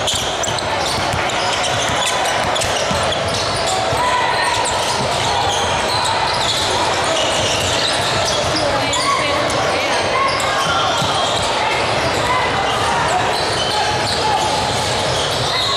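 Many people chatter and call out across the gym.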